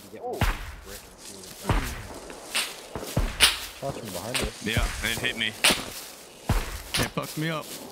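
Leafy branches rustle and swish as something pushes through dense bushes.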